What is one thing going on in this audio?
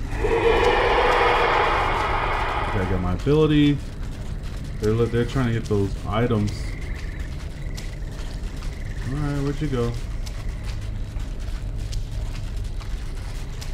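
Footsteps crunch through dry leaves and thump on wooden boards.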